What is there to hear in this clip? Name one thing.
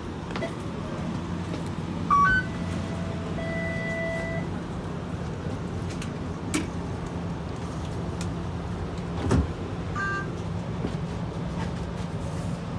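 A tram rumbles along with a low, steady hum.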